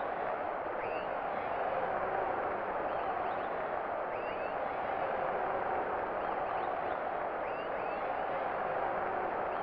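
A large crowd roars steadily.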